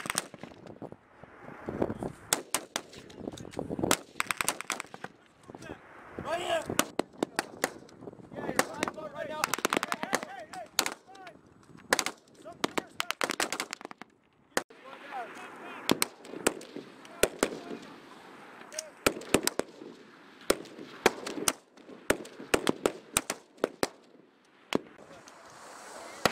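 Rifles fire in rapid sharp cracks close by.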